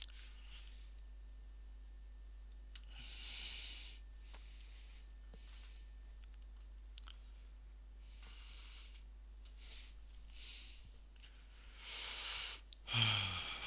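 Plastic parts click and rustle as they are handled.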